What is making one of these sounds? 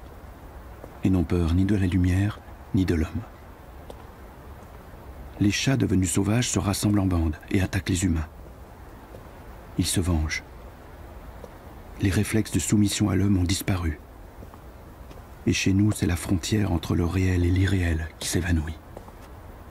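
A man speaks calmly and slowly, close to the microphone.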